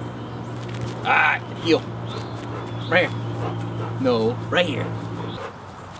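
A man gives short, firm commands to a dog nearby.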